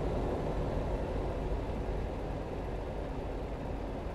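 A passing truck rushes by close.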